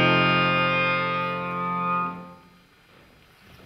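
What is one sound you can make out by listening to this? A piano plays a final chord that rings out and fades.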